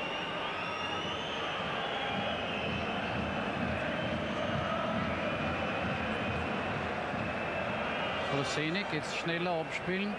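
A large stadium crowd chants and sings steadily.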